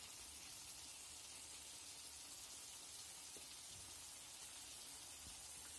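Cooked chickpeas drop softly into the sauce.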